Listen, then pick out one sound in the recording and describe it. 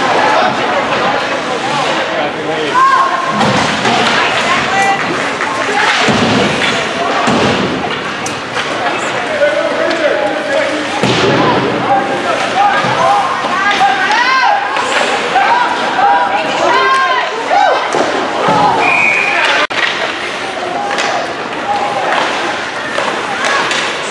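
Young players shout to each other in a large echoing rink.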